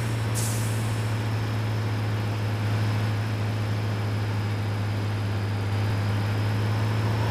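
A truck engine hums steadily at low speed.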